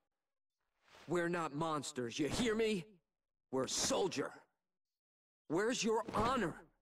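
A young man speaks forcefully, half shouting.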